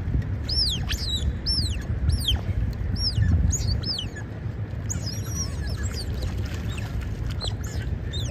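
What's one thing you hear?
Water laps and splashes as otters climb out of it.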